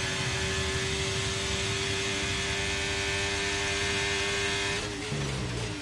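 A racing car engine screams at high, steady revs.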